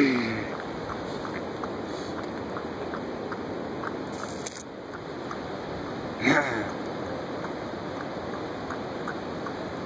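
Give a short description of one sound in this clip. A snow leopard laps water from a metal bowl.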